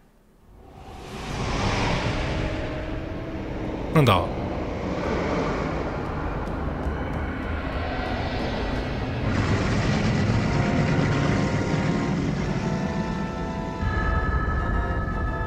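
A dark swirling mass churns with a deep, rushing rumble that swells up and keeps on.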